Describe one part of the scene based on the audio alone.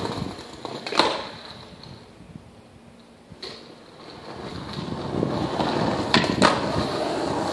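A skateboard deck clacks against a curb.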